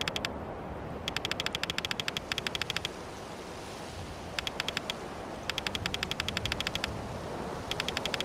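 Quick, soft electronic blips tick rapidly in bursts.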